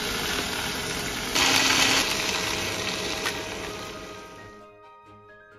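Vegetables sizzle in a hot frying pan.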